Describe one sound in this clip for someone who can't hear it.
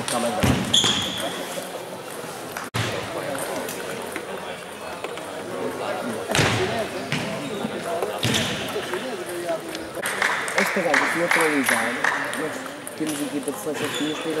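A ping-pong ball clicks sharply back and forth off paddles and a table in a large echoing hall.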